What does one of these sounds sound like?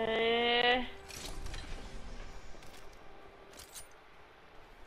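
Short metallic clicks sound as items are picked up.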